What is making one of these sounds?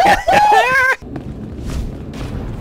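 A smoke bomb bursts with a muffled whoosh.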